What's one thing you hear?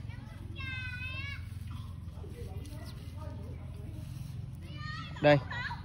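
Leaves rustle softly as a hand brushes through seedlings.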